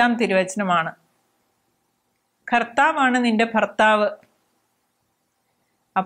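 A middle-aged woman speaks calmly and clearly into a close microphone.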